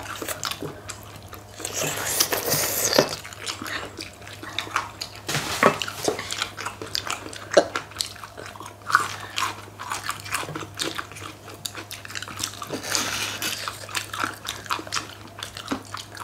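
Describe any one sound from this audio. Chopsticks click against dishes.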